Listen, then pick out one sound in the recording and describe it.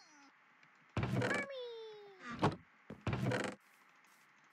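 A wooden chest creaks open and shut.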